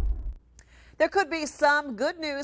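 A woman speaks clearly and calmly into a microphone, close by.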